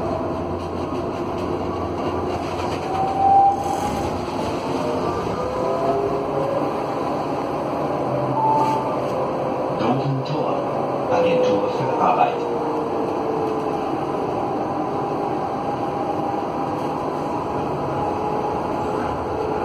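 Tram wheels squeal and whine on the rails.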